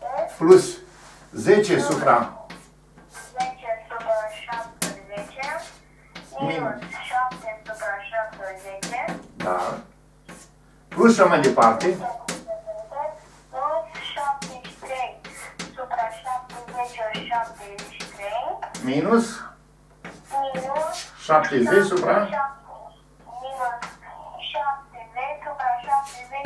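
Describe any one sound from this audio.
An elderly man talks calmly and steadily, close by.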